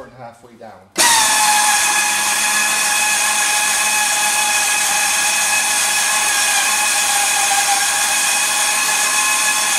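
A motor whirs steadily as a camper roof rises.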